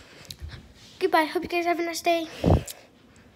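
A young girl sings out in a high voice close by.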